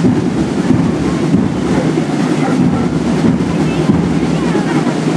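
Loud music with a heavy drumbeat plays outdoors.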